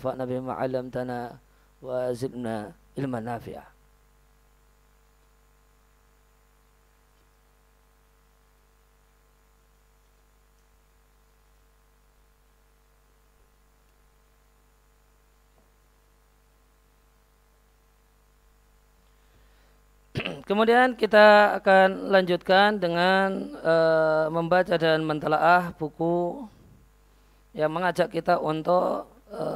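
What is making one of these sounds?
A man speaks calmly into a microphone, pausing at times.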